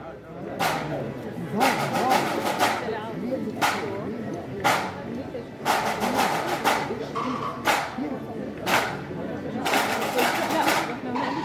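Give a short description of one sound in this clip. A marching band's drums and cymbals strike in a rhythm nearby.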